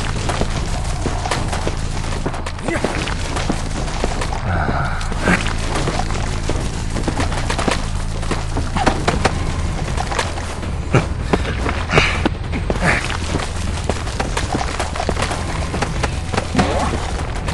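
Footsteps patter quickly over soft ground.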